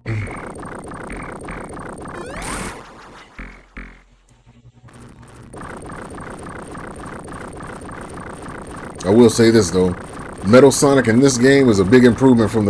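Electronic game music plays with a quick, bouncy beat.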